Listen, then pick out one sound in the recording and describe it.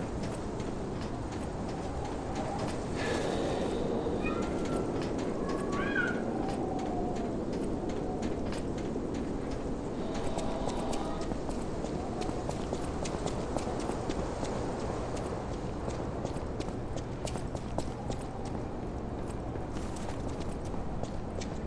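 Footsteps patter quickly on a hard roof.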